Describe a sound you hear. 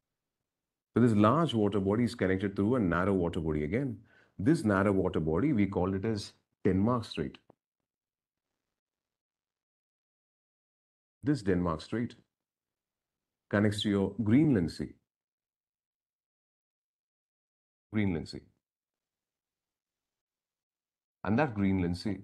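A man speaks calmly, explaining, in short bursts with pauses, close to a microphone.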